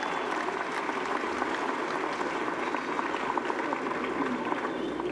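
A young woman speaks through a microphone over loudspeakers.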